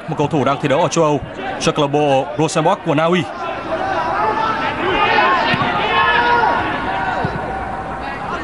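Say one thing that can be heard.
A large stadium crowd murmurs and cheers from a distance.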